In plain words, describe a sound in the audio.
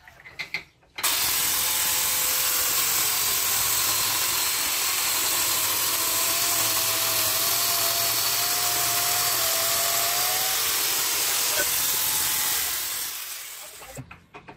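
A small battery-powered chainsaw whines as it cuts through a tree trunk.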